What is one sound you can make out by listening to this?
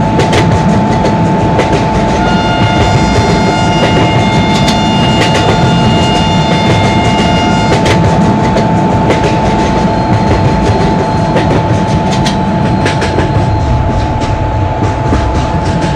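A diesel locomotive engine rumbles steadily.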